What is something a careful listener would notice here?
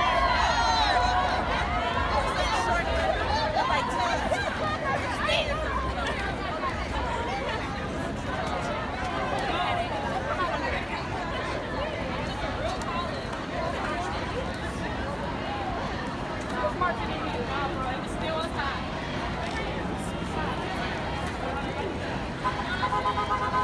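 A large crowd of marching people chants and talks outdoors.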